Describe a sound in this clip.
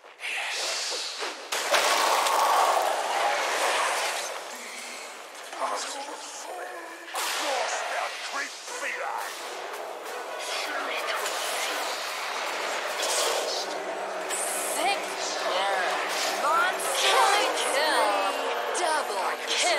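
Magic blasts and hits crack sharply.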